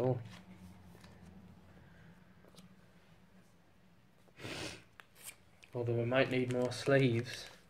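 Trading cards and foil packs rustle and slide under a hand.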